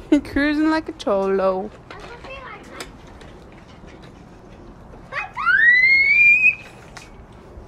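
A young child squeals and shouts excitedly nearby.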